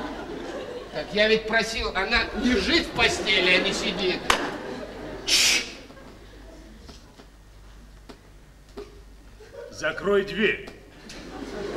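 A man speaks loudly and with animation, in a room with a slight echo.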